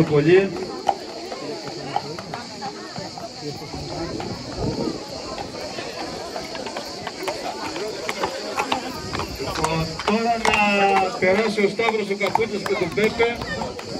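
A horse's hooves clop on pavement.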